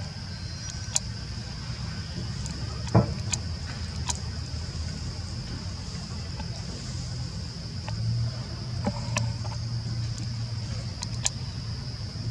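A thin metal pole knocks and rattles as monkeys climb it.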